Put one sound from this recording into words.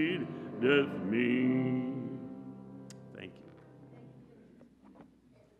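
A congregation sings a long final note that echoes and fades in a large hall.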